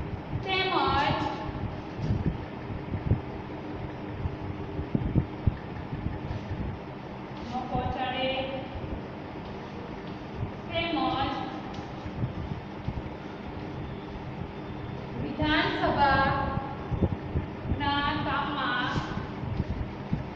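A woman speaks in short bursts nearby.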